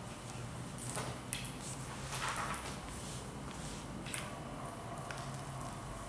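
A kitten crunches dry food from a bowl, with sharp little clicks.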